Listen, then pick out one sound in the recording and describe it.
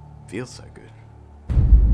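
A man speaks briefly, close to a microphone.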